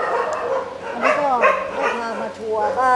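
Dogs whine and yelp excitedly close by.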